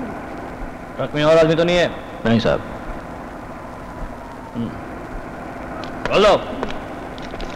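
A man speaks briefly from a truck cab.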